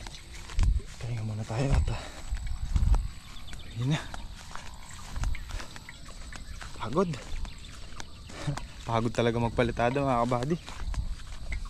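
A young man speaks calmly and close by, in short bursts.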